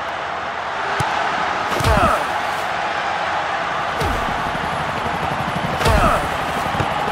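A ball is kicked with dull thumps.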